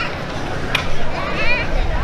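A girl's footsteps tap on a wooden stage.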